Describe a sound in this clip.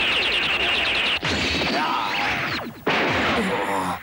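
Energy blasts crackle and zap.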